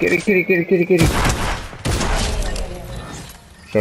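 Gunshots bang loudly in quick succession.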